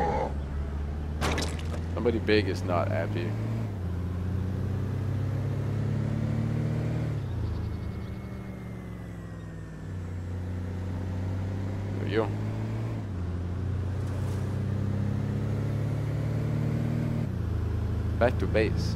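A car engine hums steadily, revving up and down.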